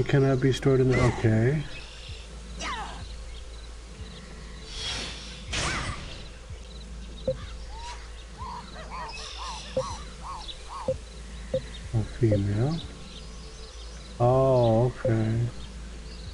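A man talks through a microphone in short bursts.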